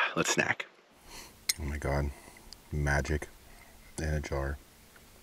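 A fork clinks and scrapes inside a glass jar.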